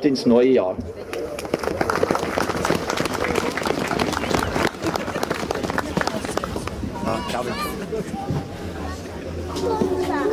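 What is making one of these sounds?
A crowd claps outdoors.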